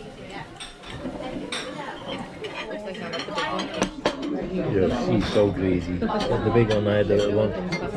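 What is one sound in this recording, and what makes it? Cutlery scrapes and clinks on a plate.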